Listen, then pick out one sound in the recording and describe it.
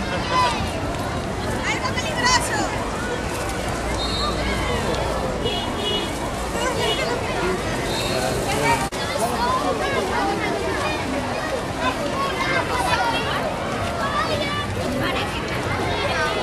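A crowd of adults and children chatters and calls out outdoors.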